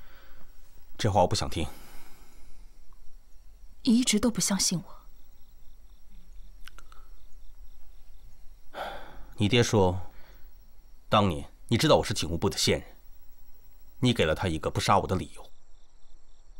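A man answers in a low, serious voice nearby.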